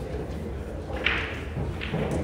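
A cue strikes a billiard ball with a crisp click.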